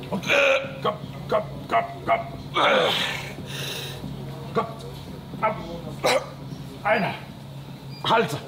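A young man grunts and strains loudly with effort.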